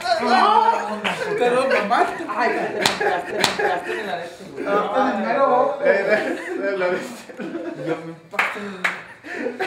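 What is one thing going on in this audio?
Young men shout and laugh loudly close by in a room.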